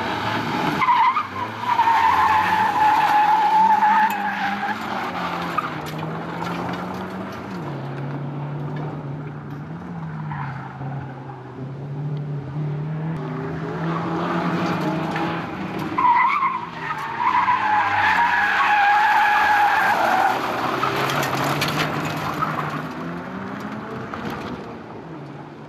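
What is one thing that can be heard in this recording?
Tyres skid and scrabble on loose gravel.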